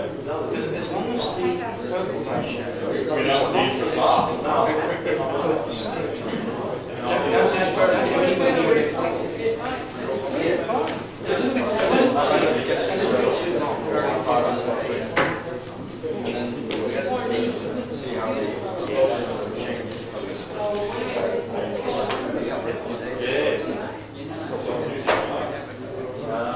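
People in an audience chatter and murmur in a large echoing hall.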